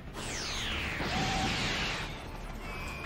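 A loud energy blast roars and whooshes.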